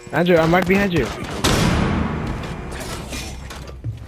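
Glass shatters loudly with a ringing echo.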